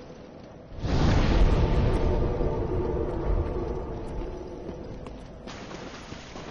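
A deep rumbling blast booms and slowly dies away.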